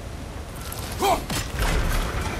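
A heavy axe strikes metal with a sharp, icy crack.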